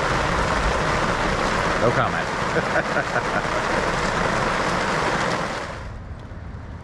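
A middle-aged man talks cheerfully and close by.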